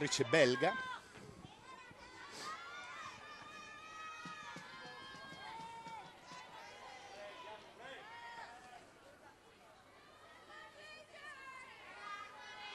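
A large crowd chants and cheers from nearby stands.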